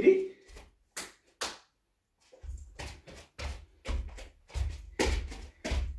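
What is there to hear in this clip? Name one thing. Bare feet stomp and slap rhythmically on a wooden floor.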